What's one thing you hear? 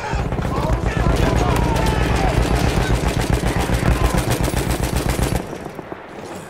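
A machine gun fires in rapid, steady bursts close by.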